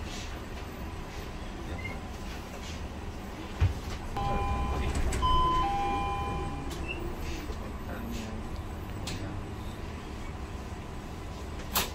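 A bus engine hums steadily while driving in slow traffic.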